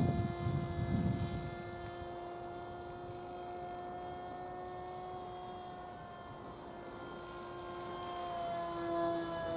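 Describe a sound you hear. A model airplane's small engine buzzes steadily overhead, growing louder near the end.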